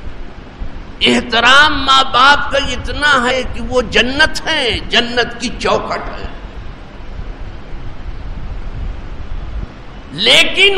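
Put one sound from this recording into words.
An elderly man recites in a drawn-out, melodic voice through a microphone.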